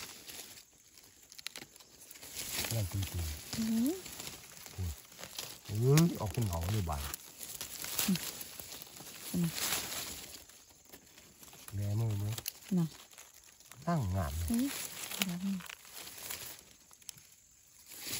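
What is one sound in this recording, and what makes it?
A knife cuts through small plant stems.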